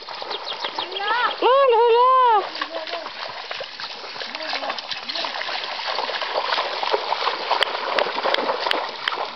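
Shallow stream water babbles and rushes steadily.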